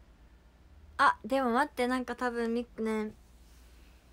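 A young woman speaks in a high, lively voice close to the microphone.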